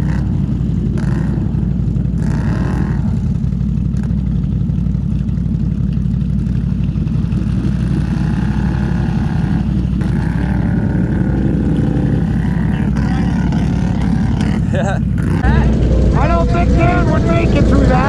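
An engine rumbles steadily and revs.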